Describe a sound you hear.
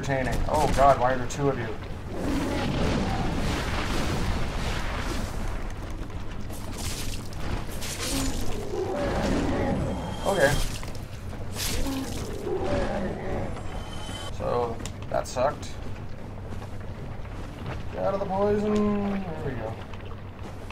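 A man talks into a close microphone with animation.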